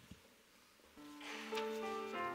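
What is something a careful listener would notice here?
A piano begins to play.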